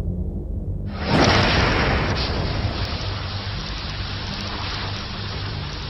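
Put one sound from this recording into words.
A powerful explosion booms and roars, followed by a long rumble.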